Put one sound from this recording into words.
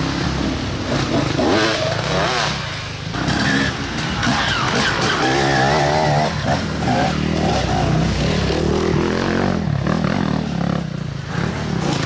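A dirt bike engine revs loudly and whines up and down.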